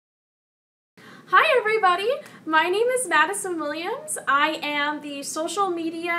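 A young woman speaks cheerfully and animatedly, close to a microphone.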